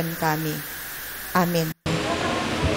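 A middle-aged woman speaks calmly through a microphone and loudspeaker.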